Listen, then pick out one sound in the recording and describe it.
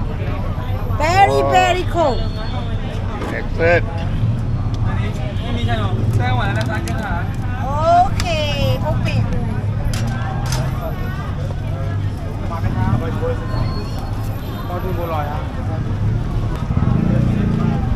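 A crowd murmurs outdoors on a busy street.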